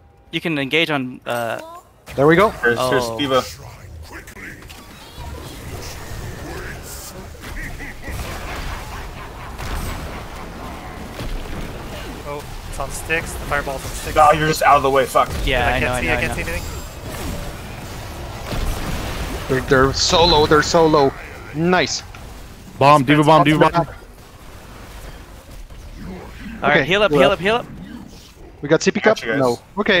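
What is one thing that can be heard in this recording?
Magic blasts and weapon clashes of a fantasy battle crackle and thud.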